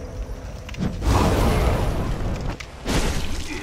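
Flames burst and roar loudly.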